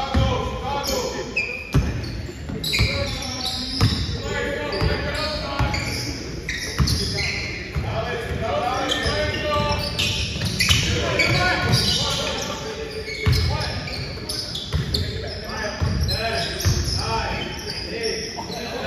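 A basketball bounces on a hard floor, echoing in a large hall.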